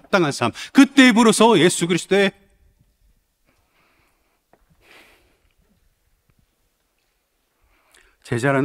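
A man speaks with emphasis into a microphone, with pauses.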